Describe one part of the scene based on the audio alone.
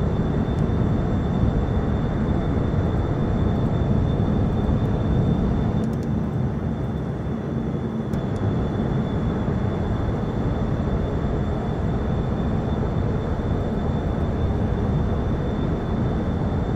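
A helicopter engine and rotor roar steadily with a deep rumble.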